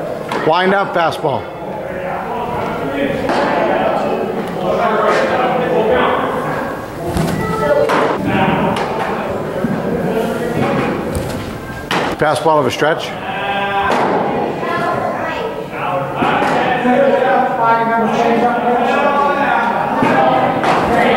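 A young man talks steadily and calmly, close by.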